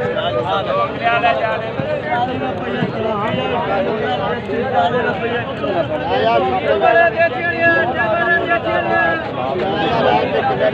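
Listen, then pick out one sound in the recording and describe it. Several men talk at once nearby, outdoors.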